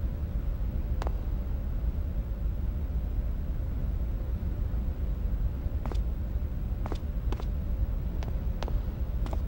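Short soft electronic blips sound now and then.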